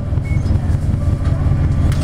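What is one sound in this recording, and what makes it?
A bus drives past close by.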